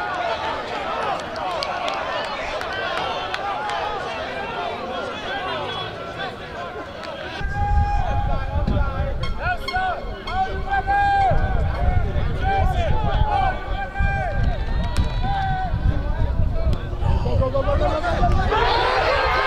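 A crowd of young players and spectators chatter and shout outdoors.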